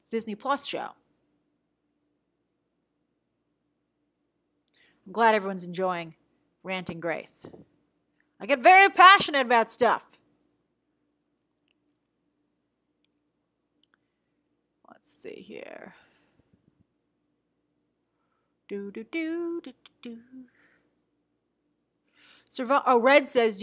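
A young woman speaks calmly in bursts with pauses, close to a microphone.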